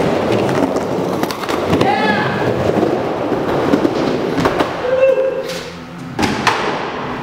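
Skateboard wheels rumble across a wooden bowl.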